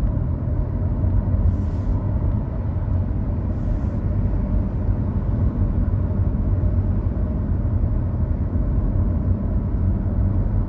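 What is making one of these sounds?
Tyres roll on a wet road, heard from inside a car.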